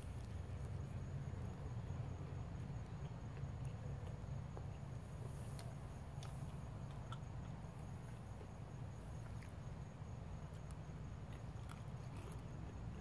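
A woman eats with soft crunching and chewing.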